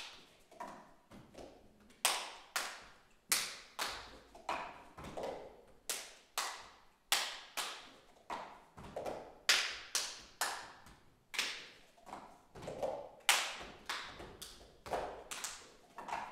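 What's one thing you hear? Several people clap their hands in a quick, steady rhythm in an echoing hall.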